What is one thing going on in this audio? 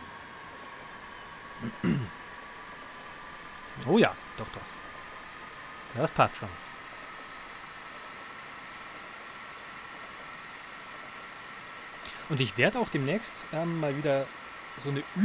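An electric train motor hums with a steady whine.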